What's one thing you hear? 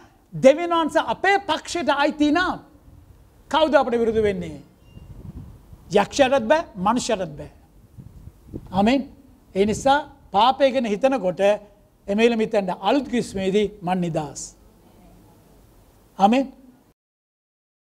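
A man preaches with animation through a microphone.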